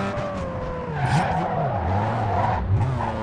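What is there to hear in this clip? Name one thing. Tyres screech as a car slides through a turn.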